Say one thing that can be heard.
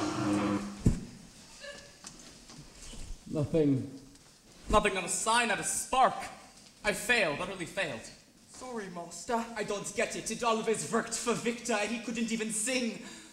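A young man speaks theatrically from a stage in a large hall.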